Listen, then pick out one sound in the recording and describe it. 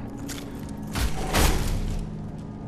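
A heavy armoured warrior lands with a loud thud.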